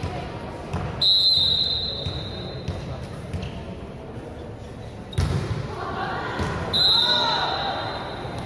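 A referee blows a shrill whistle.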